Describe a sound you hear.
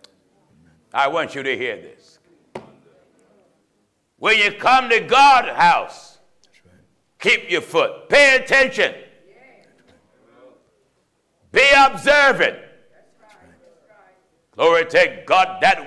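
A man preaches forcefully into a microphone in short, loud bursts with pauses between them.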